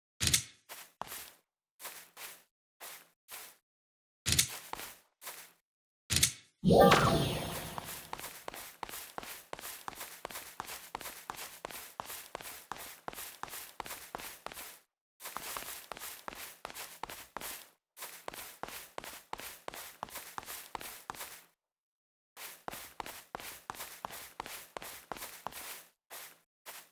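Quick footsteps patter steadily on the ground.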